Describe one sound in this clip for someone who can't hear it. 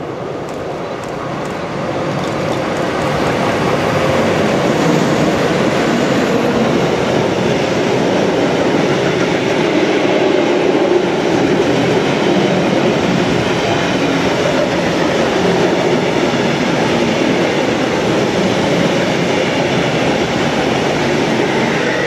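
A long freight train rumbles past close by, its wheels clattering on the rails.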